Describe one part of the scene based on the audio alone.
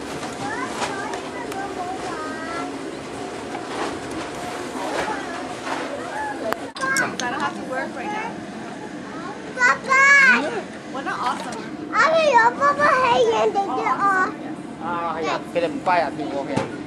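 Young children chatter and squeal nearby.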